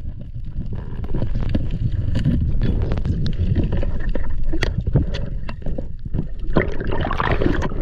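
Water rushes and gurgles underwater.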